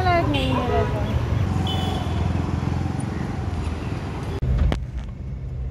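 Motorbike engines and traffic rumble on a street.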